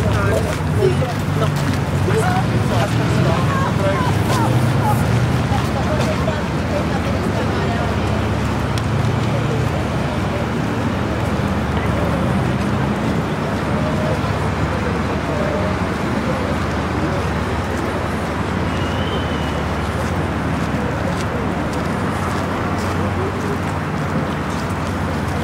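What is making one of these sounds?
A crowd of people chatters softly in the distance outdoors.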